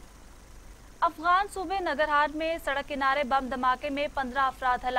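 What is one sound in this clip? A young woman reads out calmly and clearly, close to a microphone.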